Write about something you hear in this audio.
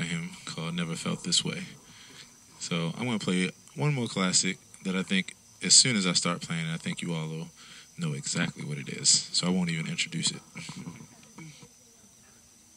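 A man speaks into a handheld microphone, heard through a loudspeaker outdoors.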